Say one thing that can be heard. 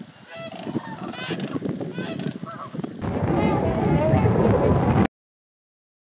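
A large flock of cranes and geese calls with rattling, honking cries.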